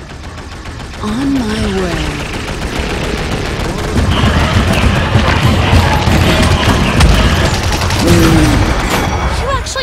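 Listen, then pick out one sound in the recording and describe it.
Rapid weapon blasts and explosions rattle in a video game battle.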